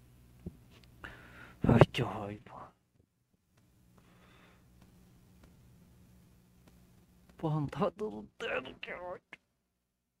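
A young man talks casually into a headset microphone, close by.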